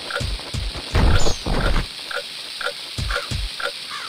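A wooden barrel is picked up and thrown with a crash.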